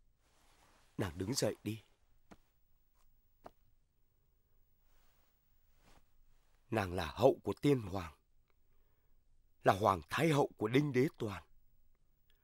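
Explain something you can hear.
A man speaks calmly and seriously.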